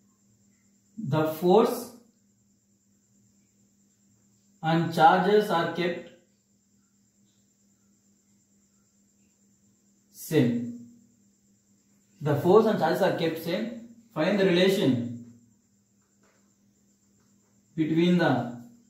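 A young man speaks calmly in short phrases, close by.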